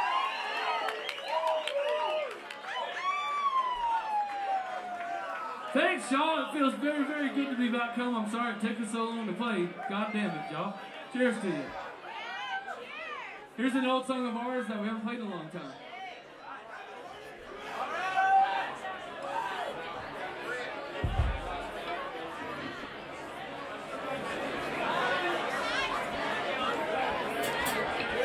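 An electric guitar plays through an amplifier.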